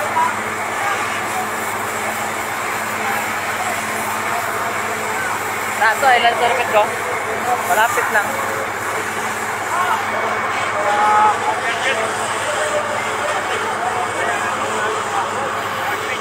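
A crowd murmurs and chatters outdoors in a dense, steady hubbub.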